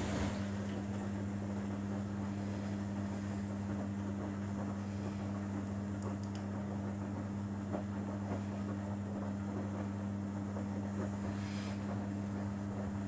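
A front-loading washing machine's drum tumbles wet laundry.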